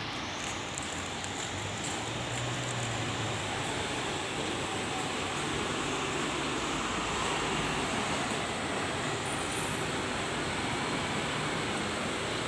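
Steady traffic noise rumbles outdoors.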